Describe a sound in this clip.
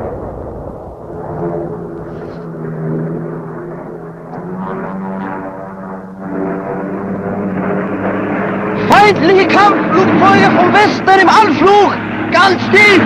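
A propeller plane's engine drones overhead.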